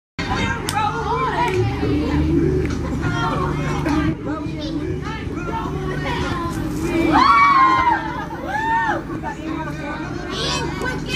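Pop music plays loudly over outdoor speakers.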